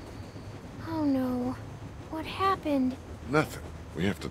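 A young girl answers in a small, quiet voice.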